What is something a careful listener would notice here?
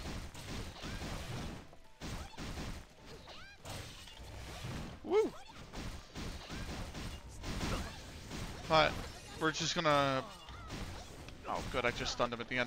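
Punches and blade slashes thump and whoosh in quick succession.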